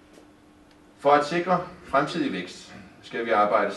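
A man speaks calmly through a headset microphone.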